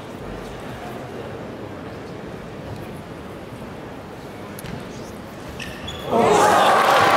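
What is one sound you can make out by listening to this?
A ping-pong ball clicks back and forth between paddles and table.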